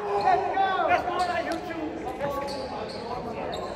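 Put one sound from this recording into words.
A volleyball is smacked by a hand in a large echoing hall.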